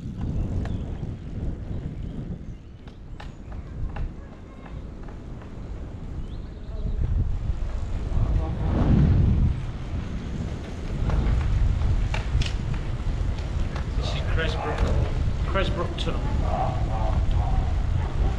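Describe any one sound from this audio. A bicycle rattles and clicks over a path.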